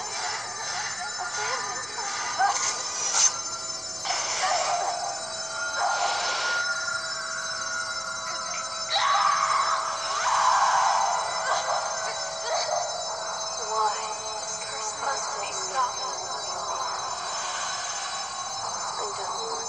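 Game music plays steadily through a small speaker.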